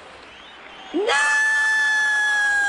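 A young woman screams loudly in a high, steady pitch.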